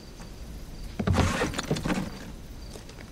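A heavy body thumps down into a chest freezer.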